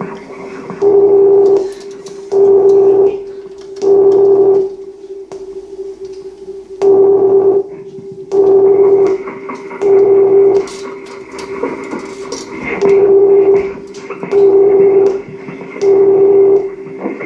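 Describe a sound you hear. Loud electronic synthesizer tones pulse in regular bursts, roughly every second and a half.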